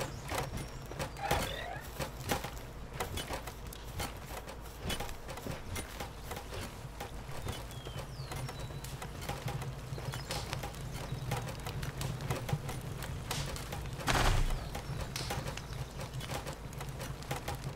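Footsteps patter across grass.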